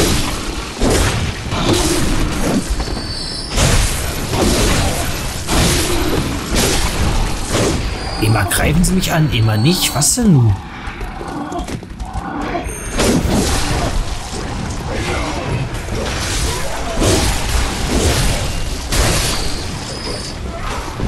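Blades slash and strike flesh again and again.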